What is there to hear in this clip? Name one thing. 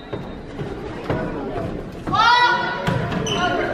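A volleyball is served with a sharp smack.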